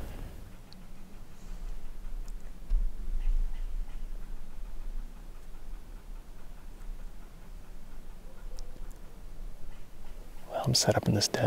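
Wind blows outdoors, rumbling low and steady.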